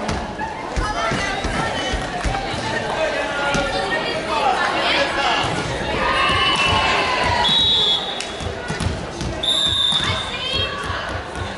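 Young women call out and shout to each other in a large echoing hall.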